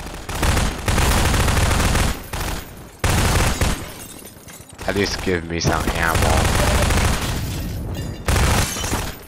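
A rifle fires rapid loud bursts.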